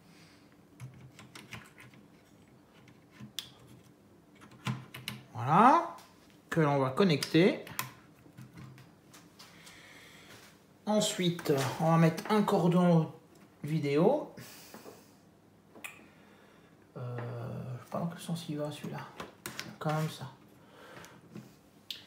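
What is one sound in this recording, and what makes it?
Small plastic connectors click and rattle as they are pressed onto a circuit board.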